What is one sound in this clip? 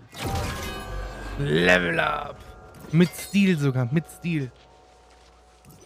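A bright, triumphant chime rings out and fades.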